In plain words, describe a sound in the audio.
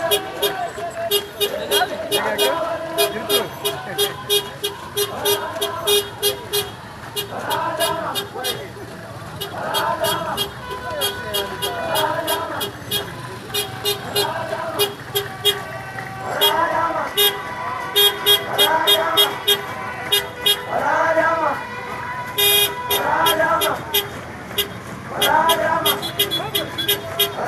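A group of young people chants together in short, repeated bursts outdoors.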